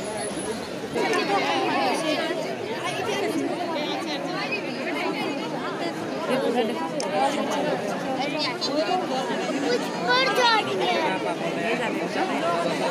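Men and women shout and call out in a crowd nearby.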